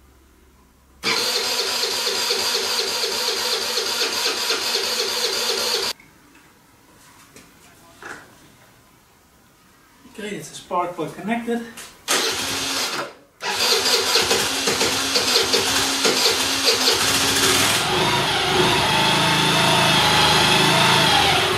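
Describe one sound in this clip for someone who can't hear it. A scooter engine idles with a steady, rattling hum, stops, then starts again.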